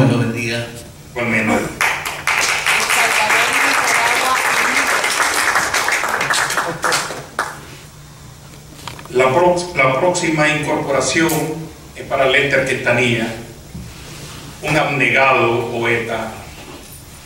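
A man speaks into a microphone in a calm, formal voice, heard through a loudspeaker in an echoing hall.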